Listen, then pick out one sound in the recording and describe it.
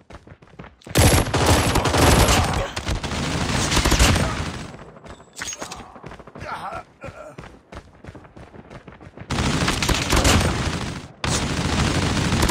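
A rapid-firing gun roars in long bursts.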